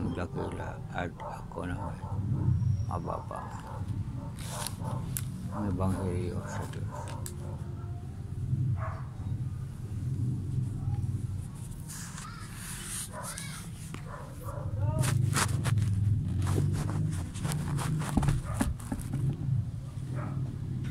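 An elderly man speaks close to a phone microphone.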